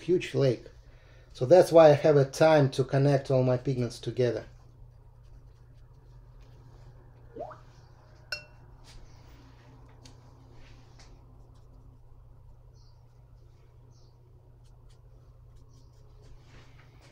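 A brush swishes softly across paper.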